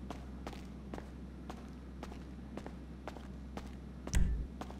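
Footsteps walk at a steady pace on a hard floor.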